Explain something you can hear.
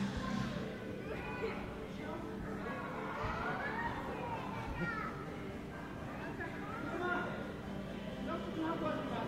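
Children shout and chatter nearby in a large echoing hall.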